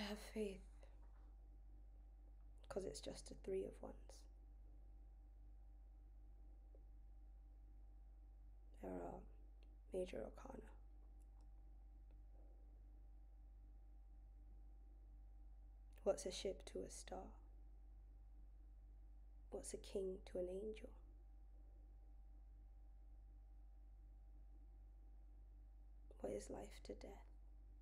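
A young woman speaks close to a microphone in short bursts with pauses.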